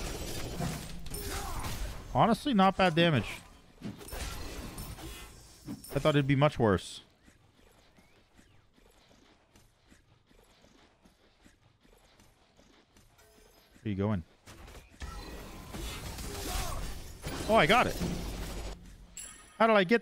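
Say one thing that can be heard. Fighting sounds of a video game clash and whoosh.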